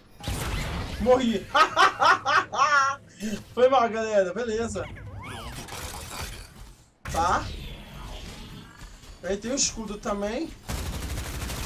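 A young man talks and exclaims with animation close to a microphone.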